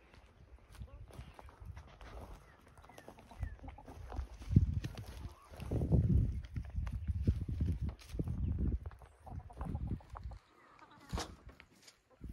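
A hen clucks softly close by.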